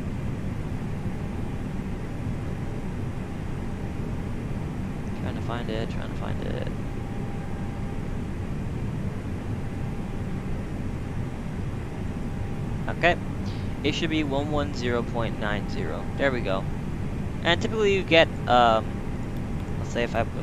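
Aircraft engines hum steadily at idle.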